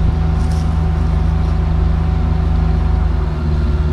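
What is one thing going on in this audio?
A tree trunk cracks and splinters as it falls.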